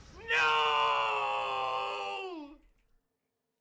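A young man screams loudly into a close microphone.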